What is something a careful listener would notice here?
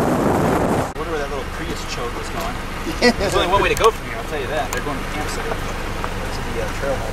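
A man talks casually nearby outdoors.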